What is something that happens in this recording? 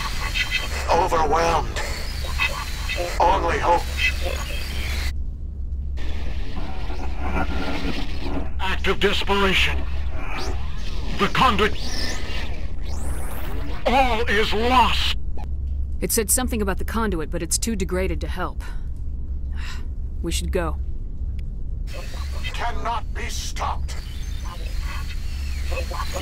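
A distorted voice crackles through static.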